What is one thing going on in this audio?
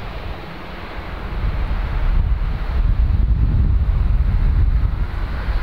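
A single-engine turboprop plane's engine roars as it rolls down the runway for takeoff.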